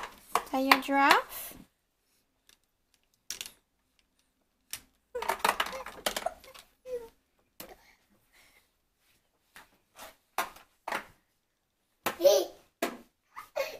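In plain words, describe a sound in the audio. Plastic toy beads click and rattle as a toddler handles a toy.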